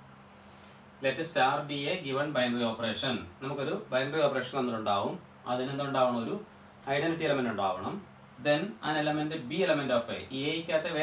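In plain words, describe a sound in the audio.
A man speaks calmly and clearly into a nearby microphone, explaining at length.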